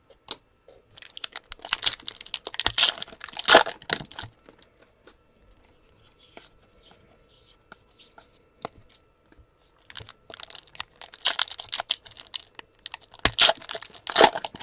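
Foil wrappers crinkle and tear as they are torn open.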